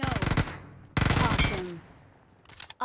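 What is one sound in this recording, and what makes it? A rifle fires rapid gunshots.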